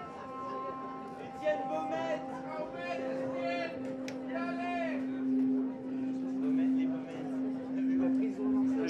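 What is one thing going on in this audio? A steady low electronic drone hums and pulses louder.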